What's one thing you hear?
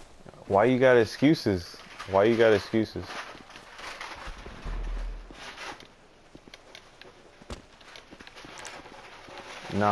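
A figure scrambles and scuffs over rock.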